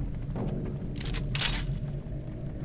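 A metal chain shoots out and rattles.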